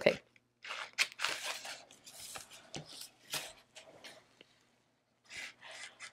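Hands rustle and handle paper up close.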